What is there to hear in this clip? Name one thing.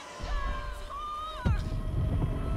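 A young woman cries out in alarm.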